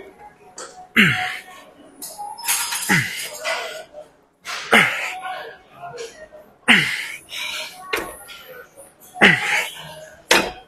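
A young man grunts with strain, again and again, close by.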